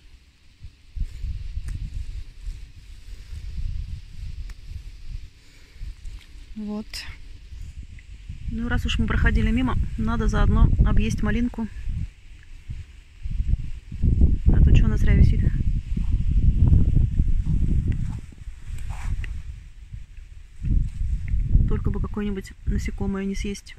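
Leaves rustle as a hand picks stems from a plant.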